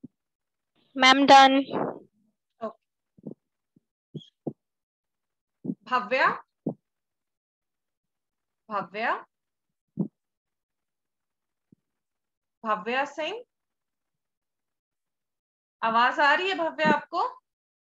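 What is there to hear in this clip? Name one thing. A young woman speaks calmly in short phrases through a microphone, with pauses between them.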